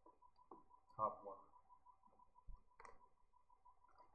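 A young man gulps water from a plastic bottle.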